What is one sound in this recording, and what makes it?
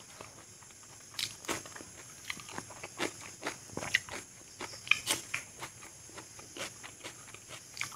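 Crisp vegetables crunch between a man's teeth.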